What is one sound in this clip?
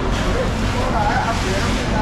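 Water splashes on a wet floor as it is sprayed from a hose.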